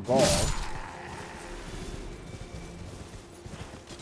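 Hooves thud as a horse gallops.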